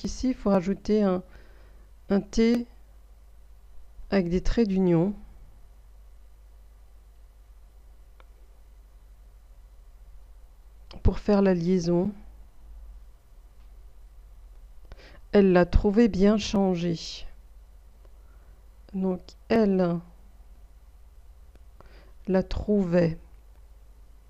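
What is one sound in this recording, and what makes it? A woman speaks slowly and clearly into a close microphone, pausing often, as if dictating.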